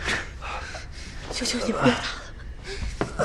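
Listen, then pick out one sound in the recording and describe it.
A young woman pleads in a tearful voice.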